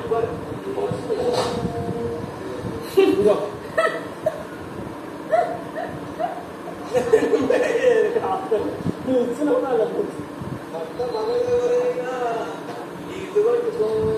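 Young men and women talk casually, heard through a television speaker.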